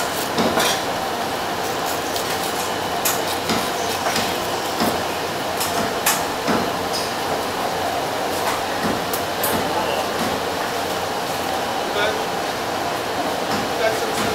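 A knife slices through fish flesh on a wooden board.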